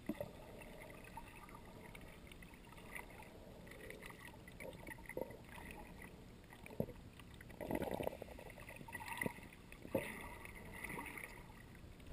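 Water sloshes and gurgles, heard muffled from underwater.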